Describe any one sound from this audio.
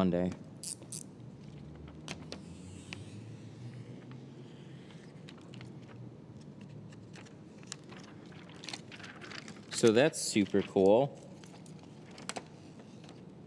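A thin plastic film crinkles and rustles as hands handle it.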